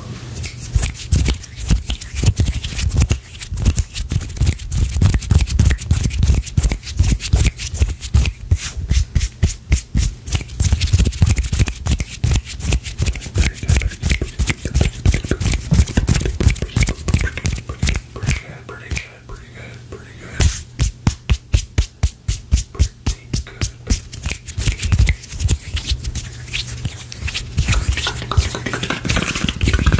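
Hands rub, tap and swish right up against a microphone.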